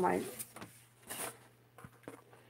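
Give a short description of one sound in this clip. A piece of cardboard rustles as it is handled.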